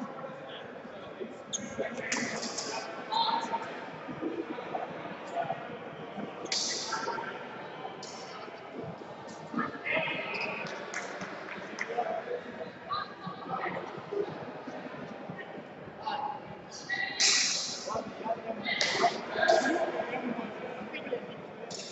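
Sneakers squeak on a hard gym floor.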